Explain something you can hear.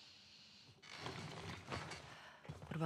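Papers rustle and slide on a table.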